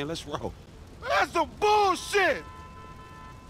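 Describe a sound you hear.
A young man shouts angrily nearby.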